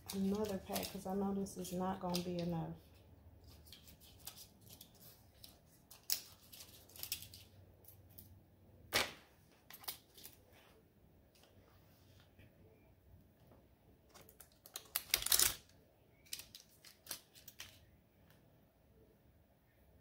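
Small hard objects click and tap on a table.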